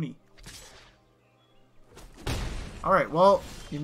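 A game impact sound effect bursts once.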